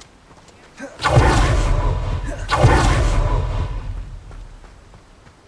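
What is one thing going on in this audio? A magical whoosh swirls up loudly and fades.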